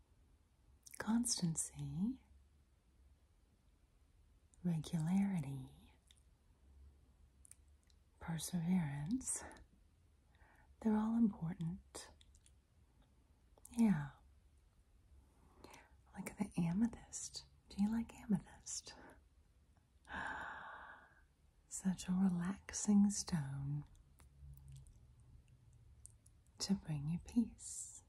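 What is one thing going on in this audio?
A woman speaks softly and slowly, close to a microphone, in short phrases with pauses.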